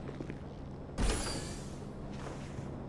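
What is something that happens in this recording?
A car door opens.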